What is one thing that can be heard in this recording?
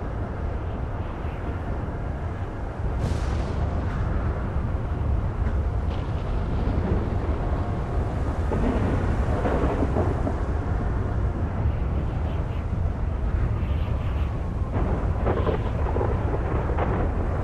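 A helicopter's rotor and engine drone steadily.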